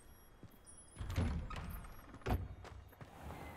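A heavy wooden door creaks open and thuds.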